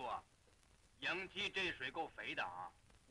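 A man speaks urgently up close.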